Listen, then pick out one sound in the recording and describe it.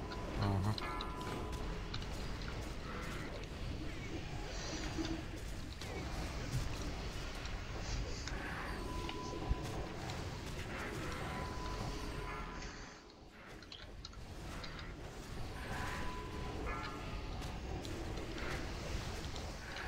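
Spell effects crackle and boom in a fantasy battle.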